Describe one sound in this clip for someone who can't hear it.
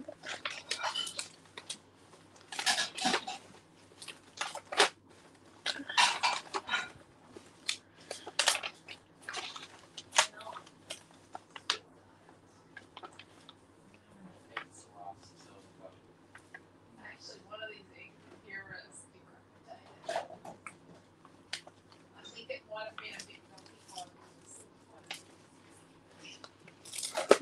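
Plastic packets crinkle and rustle as hands sort through them.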